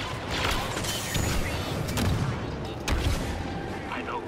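A jetpack roars with a rushing blast.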